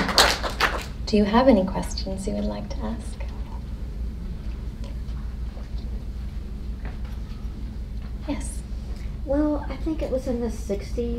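A young woman reads out calmly through a microphone.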